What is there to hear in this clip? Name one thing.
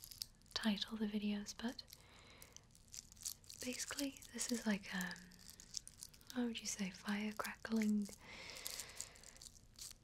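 Fingers tap and scratch on a glittery ornament close to a microphone.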